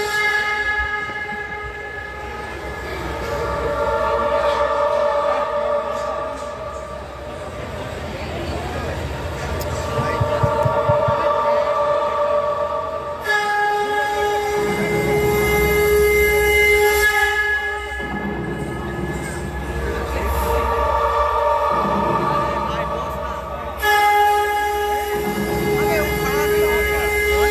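Loud devotional music plays through loudspeakers outdoors.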